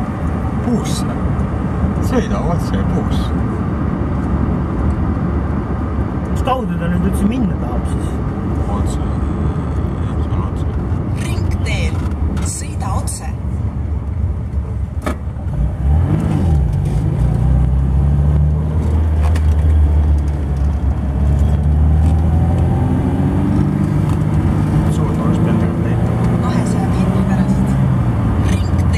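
A car engine hums steadily from inside the car, rising in pitch as it speeds up.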